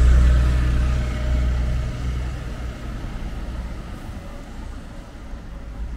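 Street traffic hums steadily in the distance.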